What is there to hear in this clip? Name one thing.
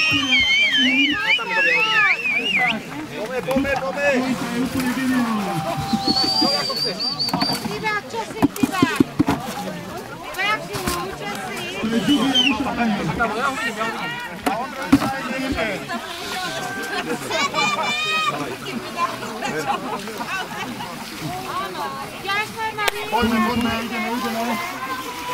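Water sloshes and splashes in shallow pans.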